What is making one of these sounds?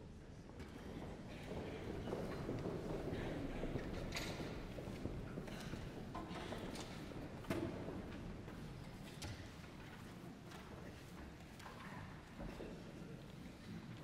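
A man speaks into a microphone, his voice echoing through a large hall.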